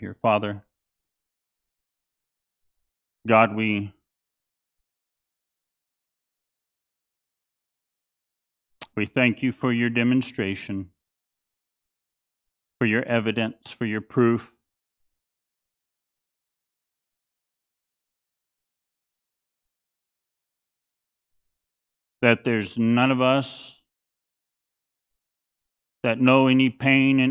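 A man speaks slowly and calmly into a headset microphone, with long pauses.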